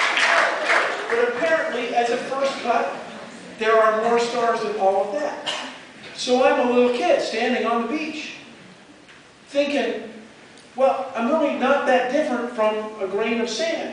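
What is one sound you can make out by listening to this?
A man speaks animatedly through a microphone and loudspeakers in a large hall.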